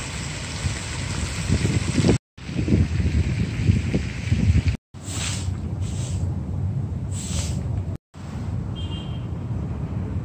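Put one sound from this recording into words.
Wind rushes outdoors, rustling palm leaves.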